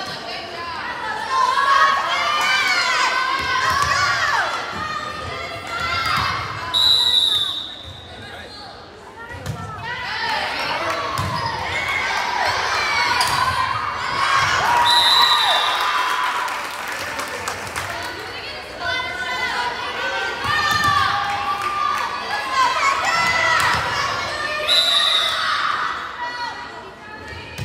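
A crowd cheers and chatters.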